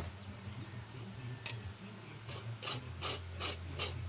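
A metal grater scrapes and rattles in a hand.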